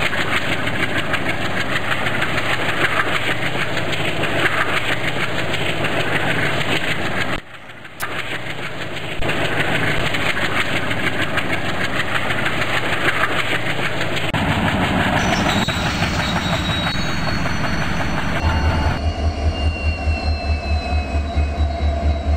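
A train rumbles and clatters along the rails.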